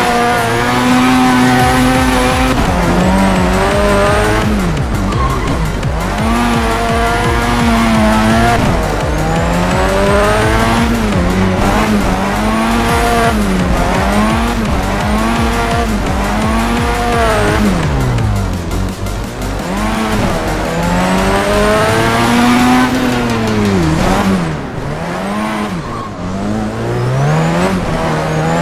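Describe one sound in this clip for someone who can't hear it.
Tyres screech while a car drifts through corners.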